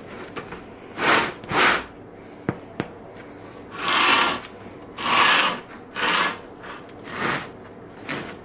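Crusty bread crackles and rustles as hands handle it.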